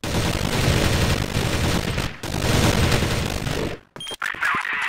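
Rifles fire in rapid, loud bursts.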